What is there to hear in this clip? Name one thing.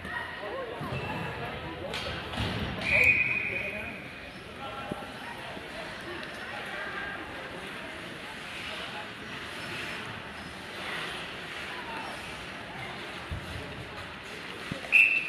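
A crowd of spectators murmurs and chatters in a large echoing arena.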